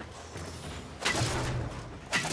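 An energy blast crackles and bursts with a loud whoosh.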